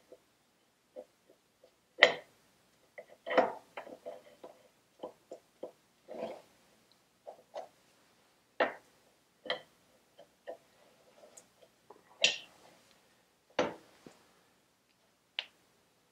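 Metal parts click and clank as they are handled.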